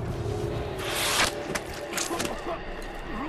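A snake hisses.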